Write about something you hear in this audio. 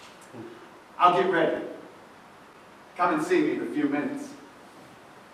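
An elderly man speaks loudly on a stage, heard from a distance in a hall.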